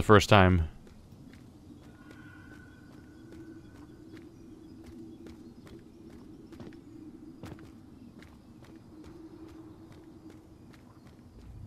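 Footsteps tread on stone and gravel.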